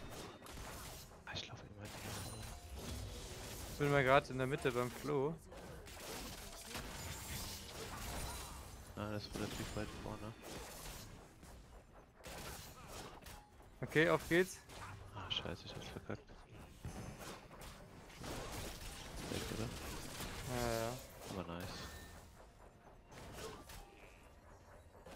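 A man talks with animation, close to a microphone.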